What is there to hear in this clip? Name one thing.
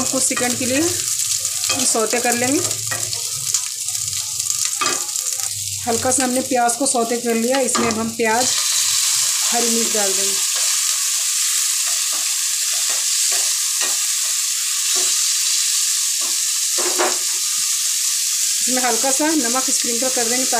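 Onions sizzle in hot oil in a pan.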